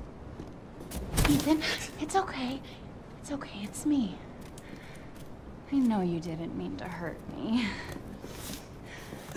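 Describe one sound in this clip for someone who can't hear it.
A young woman speaks urgently, close by.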